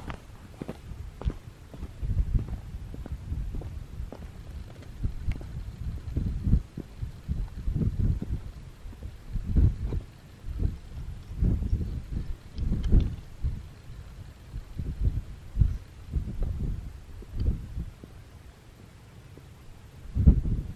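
Boots crunch on stony ground.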